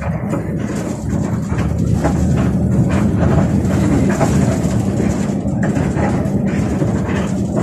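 A bus rattles over the road.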